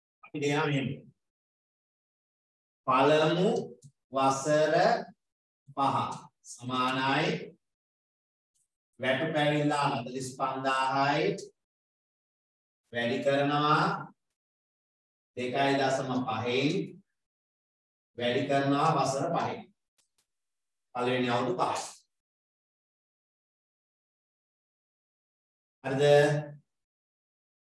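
A man lectures calmly in short phrases with pauses, heard through a microphone.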